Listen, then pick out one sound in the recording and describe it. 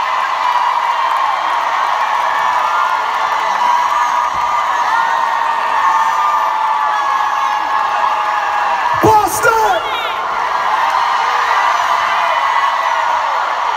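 A large crowd screams and cheers loudly in a big echoing arena.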